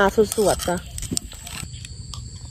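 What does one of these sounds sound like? Papaya salad slides out of a clay mortar onto leaves.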